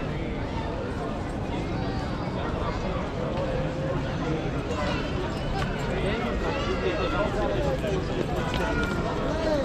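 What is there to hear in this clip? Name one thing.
Footsteps scuff on stone steps close by.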